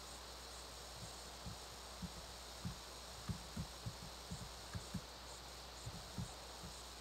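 Fingers tap softly on a touchscreen.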